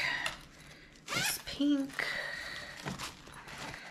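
Paper bills rustle as they are handled.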